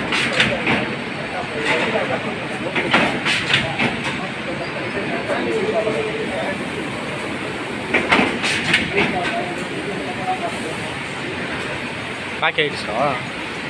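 Machine parts clack and click rapidly.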